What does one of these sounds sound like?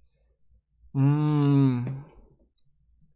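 A young man draws out a long, humming sound.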